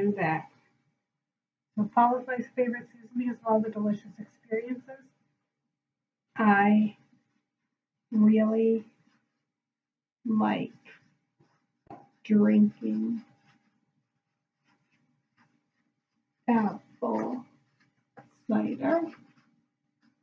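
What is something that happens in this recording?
A young woman speaks calmly and clearly, close by, pausing between phrases.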